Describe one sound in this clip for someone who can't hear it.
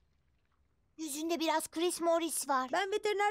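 A young boy speaks nervously, close by.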